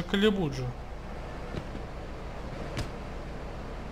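A car door opens with a click.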